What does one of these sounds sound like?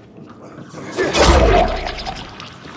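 A body thuds heavily onto a wooden floor.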